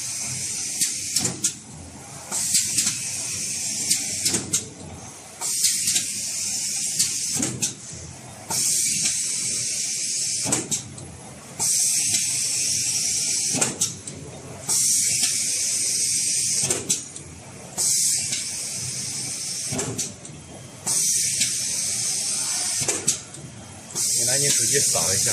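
A machine whirs and clicks in a steady, repeating rhythm.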